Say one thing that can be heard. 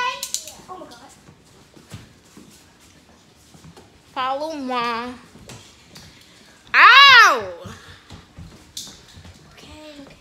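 A girl speaks briefly nearby.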